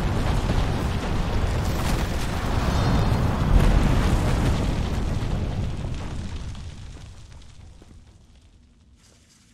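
A heavy crash of falling debris rumbles and slowly fades.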